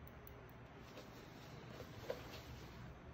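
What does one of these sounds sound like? Metal tweezers click and tap softly.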